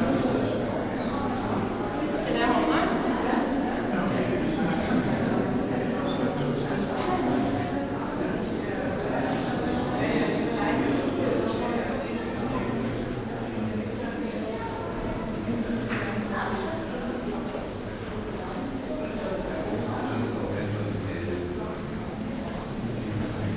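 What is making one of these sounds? A crowd of people murmur and chatter in a large echoing hall.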